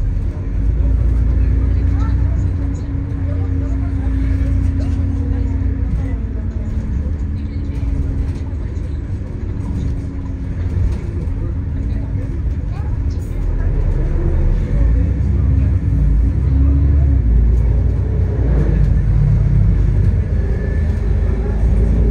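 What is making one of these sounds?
Traffic passes on the street nearby.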